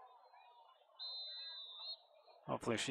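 A referee's whistle blows a short, steady blast.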